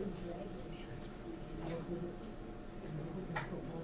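Paper rustles as a sheet is shifted.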